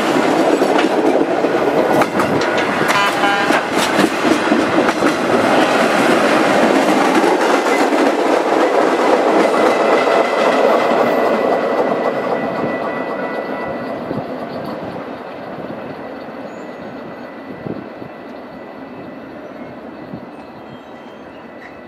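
A freight train rumbles past close by, its wheels clattering on the rails and then fading into the distance.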